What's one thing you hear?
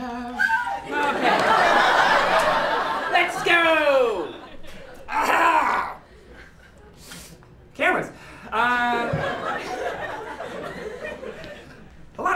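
An audience laughs in a large room.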